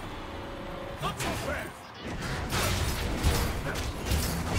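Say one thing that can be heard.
Game spells whoosh and crackle in a fast fight.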